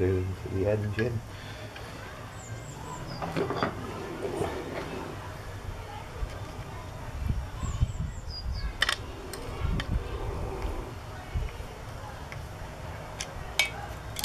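Metal parts clink and tap as a small engine part is handled.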